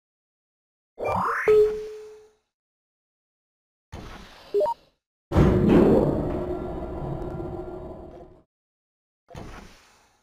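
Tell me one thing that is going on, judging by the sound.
Short electronic game sound effects chime and whoosh in bursts.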